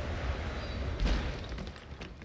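A heavy thud lands hard on pavement.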